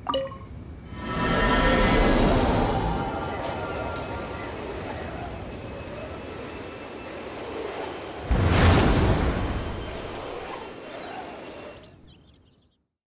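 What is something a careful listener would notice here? A magical shimmering whoosh swells and fades.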